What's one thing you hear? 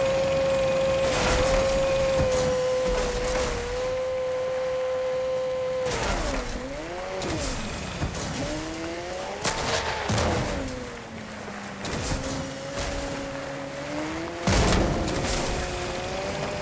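A car engine hums steadily, then revs up and down.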